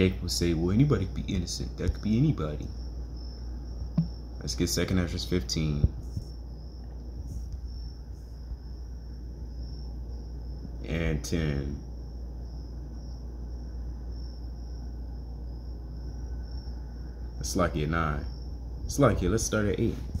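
A man speaks calmly into a phone's microphone, close by, in short bursts with pauses.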